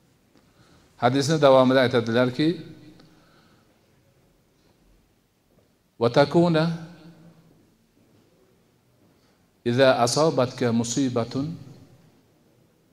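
An elderly man speaks slowly and calmly into a microphone, with pauses between phrases.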